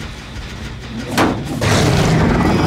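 A metal engine clangs loudly as it is kicked.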